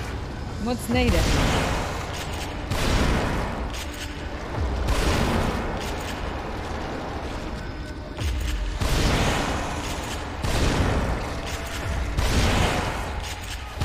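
Gunshots boom one after another.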